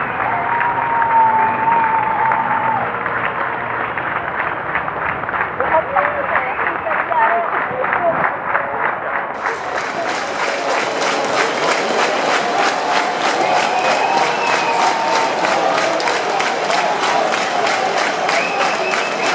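Loud amplified music with a steady pounding beat plays through a large venue.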